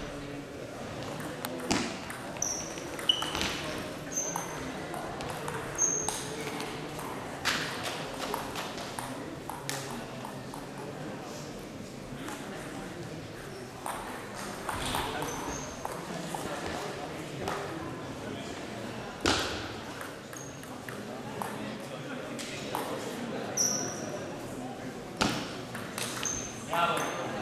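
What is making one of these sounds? Table tennis balls click against paddles and the table in a large echoing hall.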